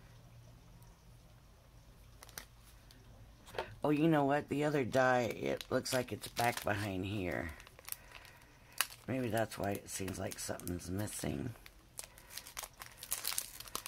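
Stiff plastic sheets crinkle and rustle as hands handle them.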